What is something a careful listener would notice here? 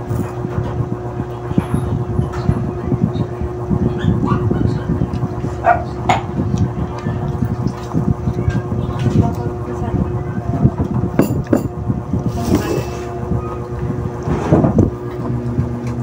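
A woman chews and smacks her lips while eating close to the microphone.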